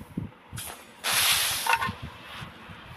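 A loud magical whoosh rushes up and fades.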